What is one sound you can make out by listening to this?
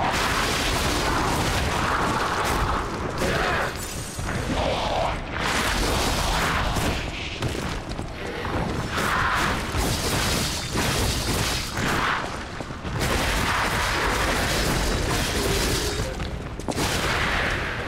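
Weapons clash and slash in a fast fight.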